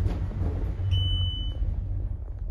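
An elevator chime beeps once.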